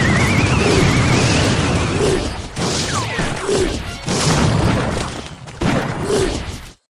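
Game sound effects of fighting units clash and burst.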